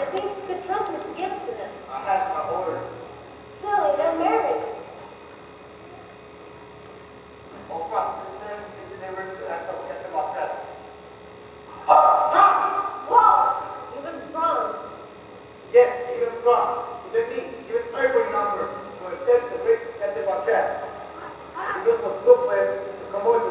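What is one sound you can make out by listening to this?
A young man speaks clearly at a distance in an echoing hall.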